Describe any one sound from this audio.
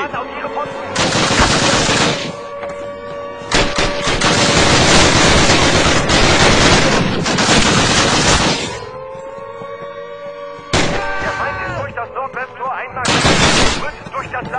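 A submachine gun fires in loud rapid bursts.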